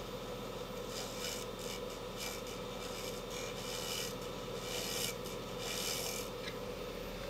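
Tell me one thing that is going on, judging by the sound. A chisel scrapes and cuts into spinning wood in short bursts.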